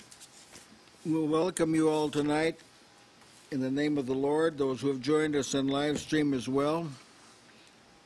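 An elderly man speaks slowly and clearly into a microphone, as if reading out.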